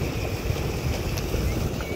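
Water splashes and gushes steadily over stone.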